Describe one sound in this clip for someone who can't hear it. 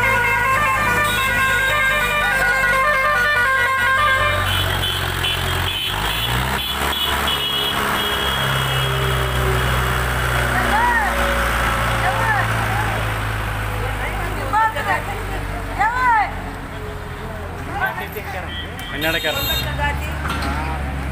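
Tractor engines rumble steadily as they haul heavy trailers past.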